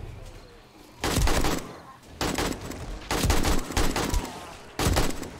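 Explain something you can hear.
A rifle fires in rapid loud bursts.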